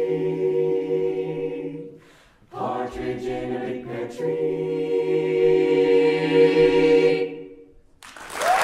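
A mixed choir sings held chords in a large echoing hall.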